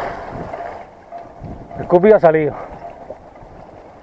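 Small waves lap gently against rocks.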